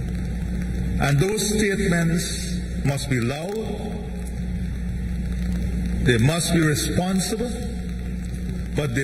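A man speaks calmly into a microphone, heard through a loudspeaker.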